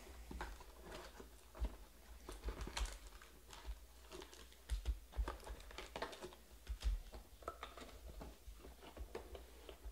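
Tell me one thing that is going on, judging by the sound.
Cardboard packs rustle and scrape as they are pulled from a box.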